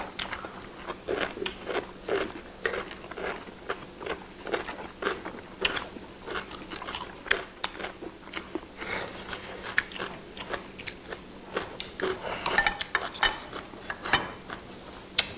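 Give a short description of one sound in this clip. People chew and slurp food loudly, close to a microphone.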